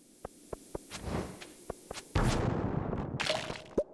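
A sword swings and strikes a creature with a thud.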